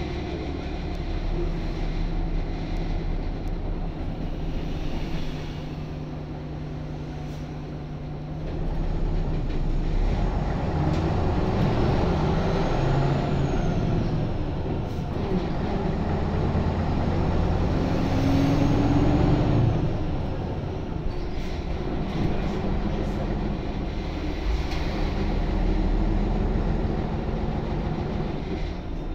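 A bus interior rattles and creaks over the road.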